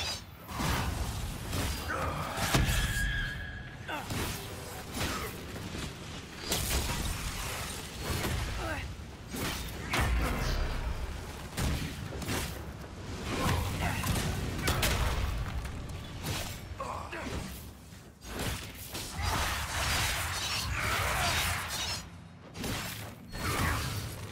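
Magic blasts burst with booming impacts.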